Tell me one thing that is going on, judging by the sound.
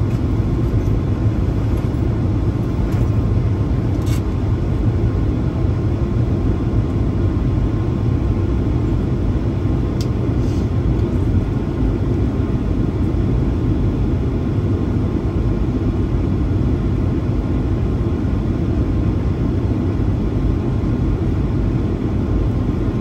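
An airplane's engines roar in a steady, low drone.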